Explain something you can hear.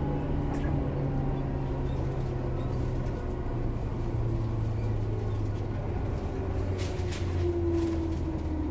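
An electric train hums and rumbles steadily as it approaches.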